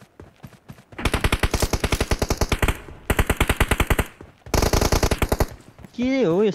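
Rapid automatic gunfire rattles in bursts.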